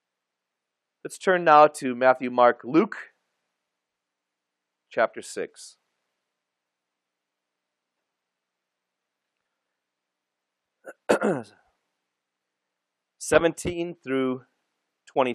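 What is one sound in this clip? A man speaks calmly through a microphone, in short phrases with long pauses.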